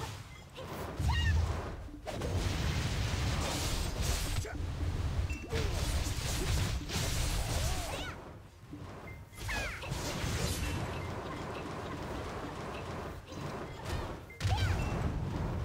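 Magic blasts whoosh and rumble.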